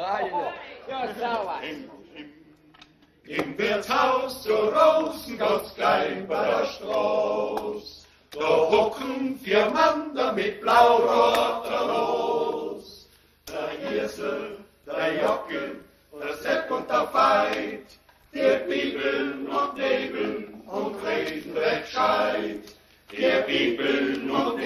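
A group of elderly men sings together in harmony.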